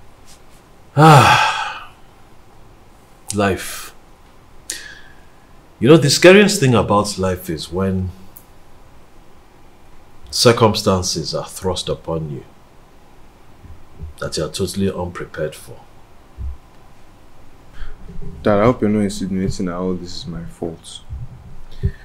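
A young man speaks in a calm, low voice close by.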